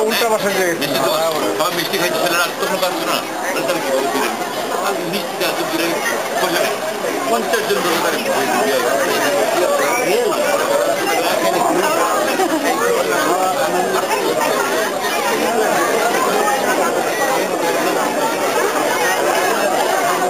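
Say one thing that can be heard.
A large crowd chatters throughout in a busy, echoing hall.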